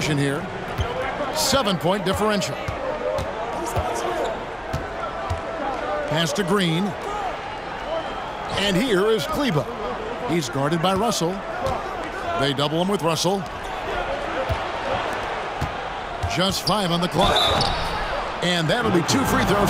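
Basketball sneakers squeak sharply on a hardwood court.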